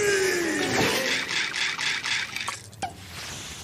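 A boy shouts angrily.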